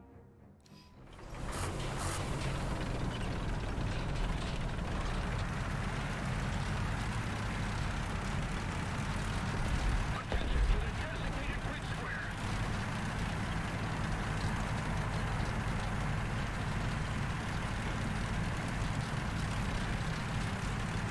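A tank engine rumbles and roars steadily.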